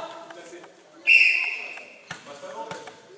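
A referee's whistle blows a short sharp blast.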